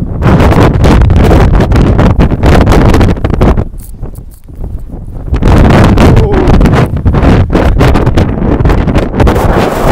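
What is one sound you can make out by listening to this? Strong wind buffets the microphone outdoors in gusts.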